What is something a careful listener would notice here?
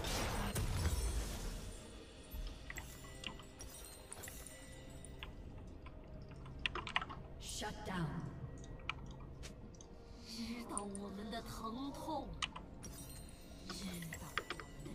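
Short game sound effects click and chime.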